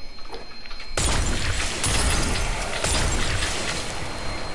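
A game blast bursts out with a loud roaring whoosh.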